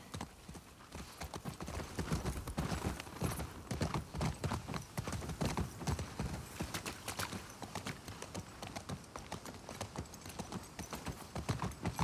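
Horse hooves thud on soft ground.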